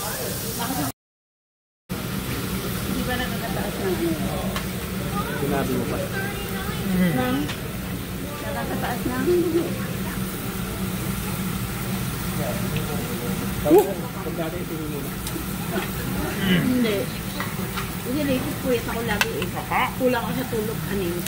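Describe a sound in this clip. Adult men and women chat around a table in a busy room.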